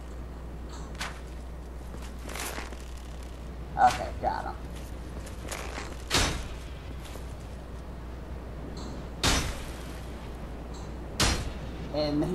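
A bowstring twangs as arrows are shot one after another.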